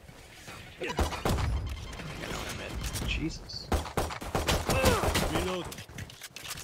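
A pistol fires several quick shots.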